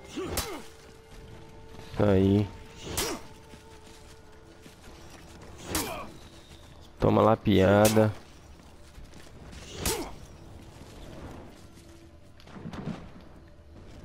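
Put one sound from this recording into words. Swords clash and swoosh through the air in sharp bursts.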